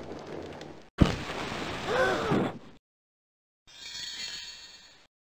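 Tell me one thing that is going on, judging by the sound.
A small flame flares up and crackles briefly.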